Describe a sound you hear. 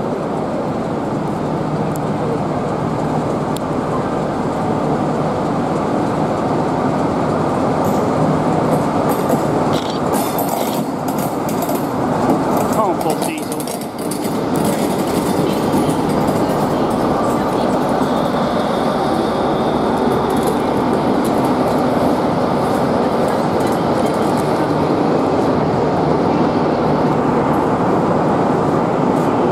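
A diesel locomotive rumbles and drones loudly as it pulls slowly into an echoing station.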